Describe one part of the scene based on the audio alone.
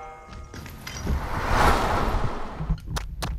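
Debris crashes down in a loud rush.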